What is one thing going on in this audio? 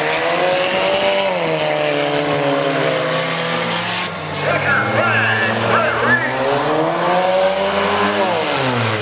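A race car engine roars and revs loudly outdoors.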